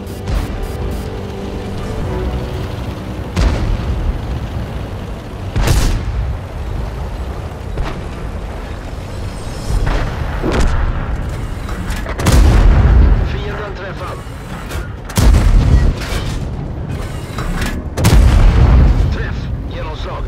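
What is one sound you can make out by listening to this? Tank treads grind over dirt.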